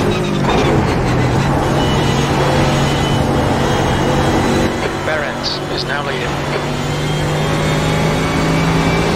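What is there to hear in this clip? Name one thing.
A racing car engine roars steadily at high revs.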